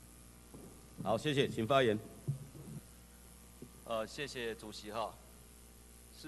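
An older man speaks into a handheld microphone, heard through a loudspeaker.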